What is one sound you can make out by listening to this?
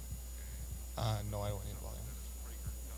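A second man speaks briefly into a microphone over loudspeakers.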